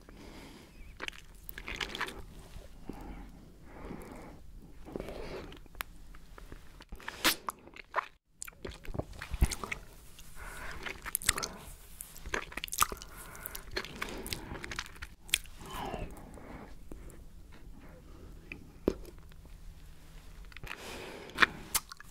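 A woman licks and sucks on a lollipop close to a microphone, with wet smacking sounds.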